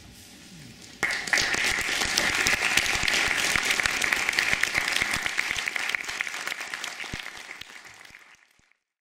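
An audience claps loudly in a large hall, then the applause dies away.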